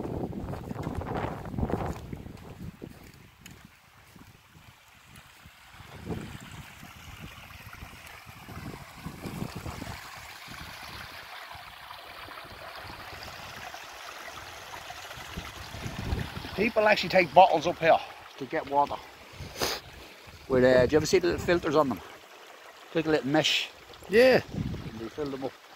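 Wind blows across open ground.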